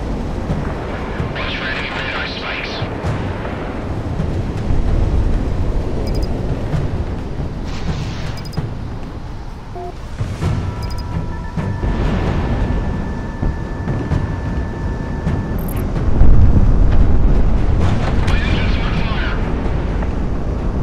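A twin-engine fighter jet roars with afterburners lit.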